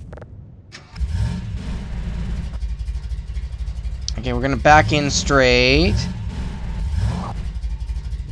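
A small buggy engine rumbles and revs.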